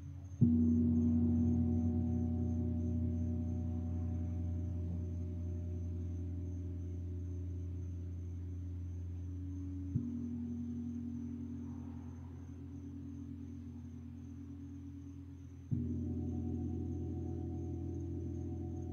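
A gong is struck softly and rings with a deep, long, humming tone.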